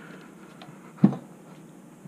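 A hand thumps on a cardboard box.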